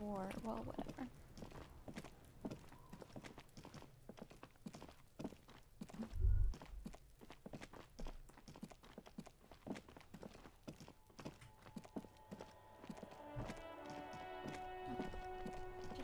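Footsteps tread slowly over hard ground.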